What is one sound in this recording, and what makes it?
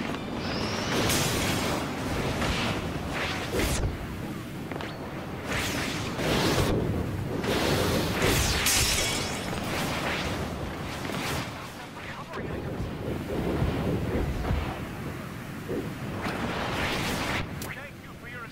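Game hits land with sharp impacts.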